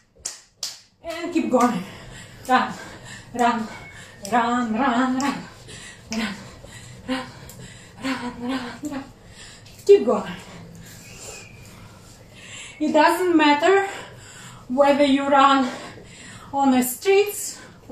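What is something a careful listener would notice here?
A young woman sings loudly and with animation close by.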